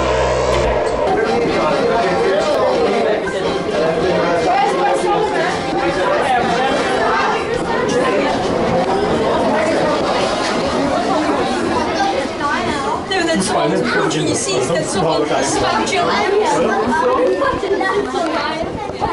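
A crowd of people chatter loudly in a crowded room.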